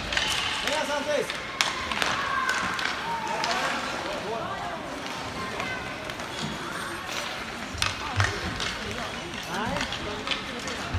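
Skates scrape and hiss across ice in a large echoing rink.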